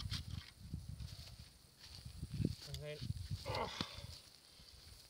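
Dry grass and branches rustle as a man tugs on a stump.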